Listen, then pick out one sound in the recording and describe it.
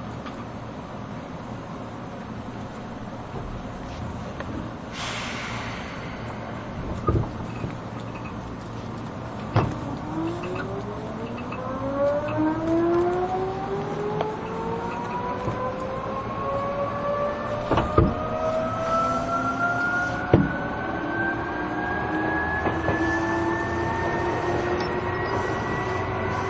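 An electric train hums at rest.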